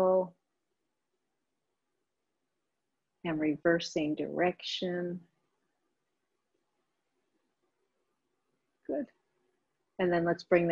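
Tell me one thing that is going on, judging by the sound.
A woman speaks calmly into a close microphone, pausing between phrases.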